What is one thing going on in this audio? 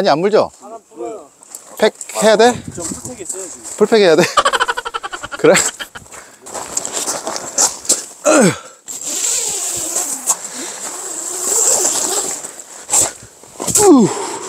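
Footsteps crunch on snowy gravel.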